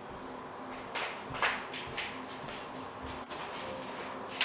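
Footsteps approach on a hard floor.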